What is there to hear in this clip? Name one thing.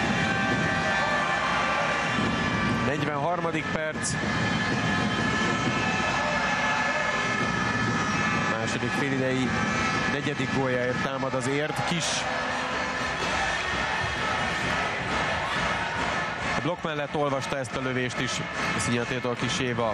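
A large crowd cheers and chants steadily in an echoing hall.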